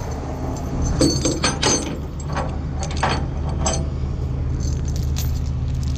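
Metal chains clink and rattle.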